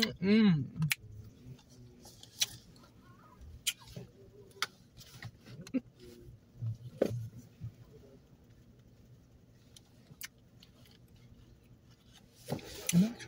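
A woman chews and smacks her lips.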